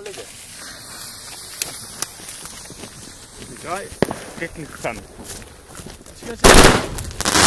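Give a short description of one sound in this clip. A lit fuse hisses.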